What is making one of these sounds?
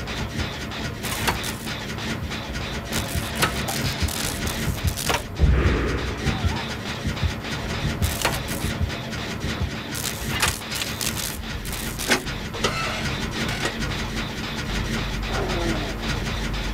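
Metal parts of an engine clank and rattle.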